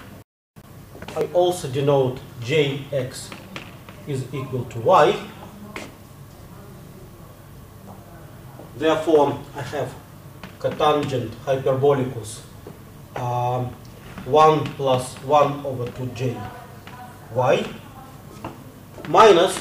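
An elderly man lectures calmly through a microphone.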